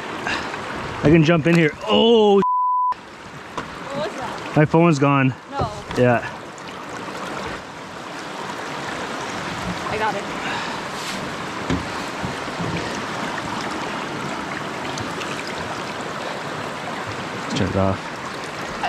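Water laps and splashes against a canoe hull.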